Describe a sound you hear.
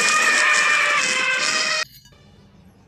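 An elephant trumpets loudly.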